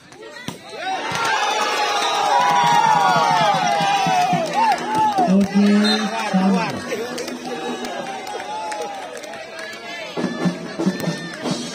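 A crowd of men cheers and shouts loudly.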